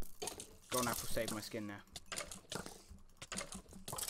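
A sword strikes a rattling skeleton.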